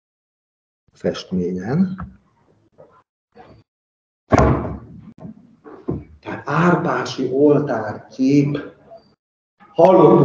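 A man presents calmly, heard through an online call.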